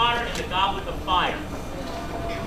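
A man speaks to an audience over a microphone in a large echoing hall.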